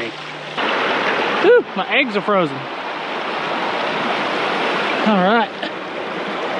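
Water trickles and splashes steadily nearby.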